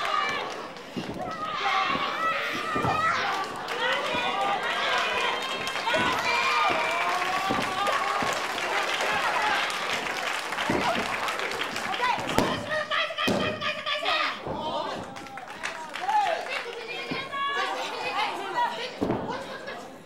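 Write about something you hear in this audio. Bodies thud on a wrestling ring mat.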